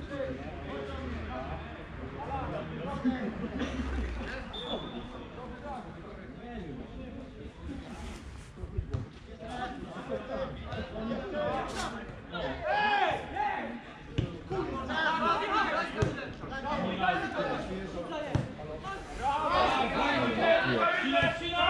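Men shout and call to each other across an open field, far off.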